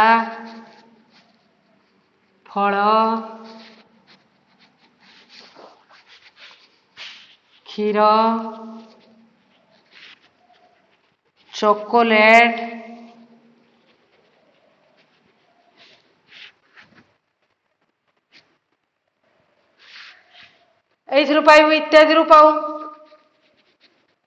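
A woman speaks aloud in slow, drawn-out bursts close by.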